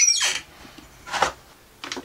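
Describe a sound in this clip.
A ceramic mug clinks as a hand takes it from a shelf.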